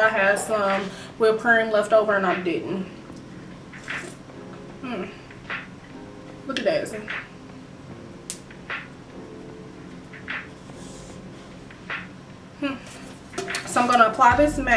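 A young woman speaks close by in a calm, chatty way.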